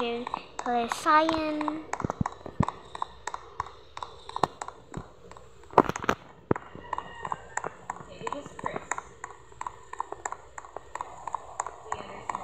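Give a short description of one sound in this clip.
Footsteps tap quickly on pavement.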